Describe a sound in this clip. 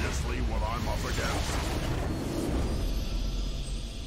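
A magical blast booms and shatters loudly.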